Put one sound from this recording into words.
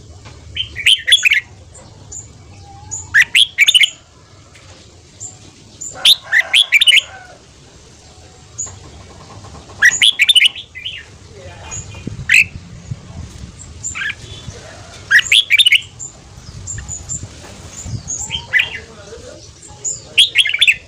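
A caged songbird sings loud, bright warbling phrases close by, again and again.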